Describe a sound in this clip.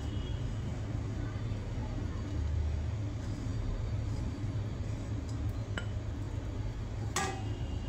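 A wooden spatula scrapes against a frying pan.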